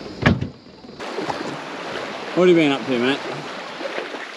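Small waves wash onto a beach.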